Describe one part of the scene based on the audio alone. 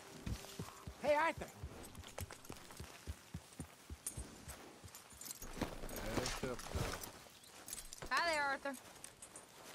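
A horse whinnies briefly, twice.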